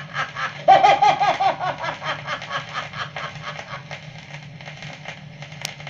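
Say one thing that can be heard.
A spinning record crackles and hisses faintly.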